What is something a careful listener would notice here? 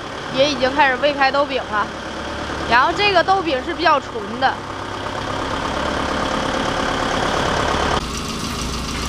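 A forklift engine rumbles steadily.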